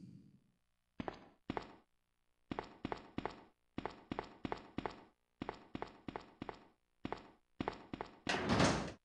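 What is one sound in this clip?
Footsteps tap on a hard floor at a steady pace.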